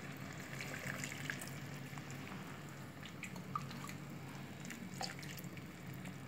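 Liquid pours into a pan with a soft splash.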